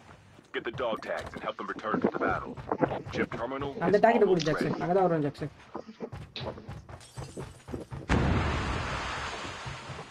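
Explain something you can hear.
Footsteps thud on wooden stairs.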